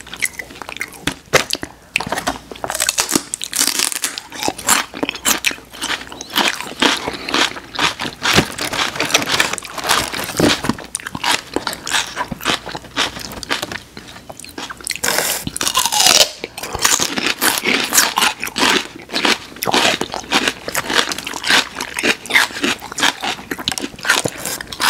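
A man and a woman crunch on crisp celery close to a microphone.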